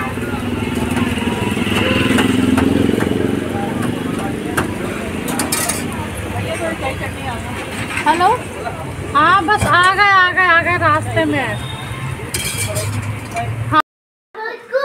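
Food sizzles loudly in hot oil on a griddle.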